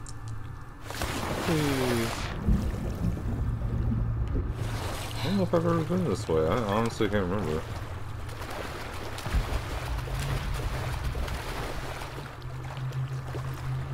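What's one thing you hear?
Water splashes and churns as a swimmer strokes through it.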